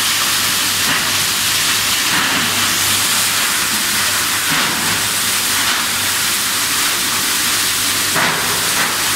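A crusher machine runs with a loud, steady roar.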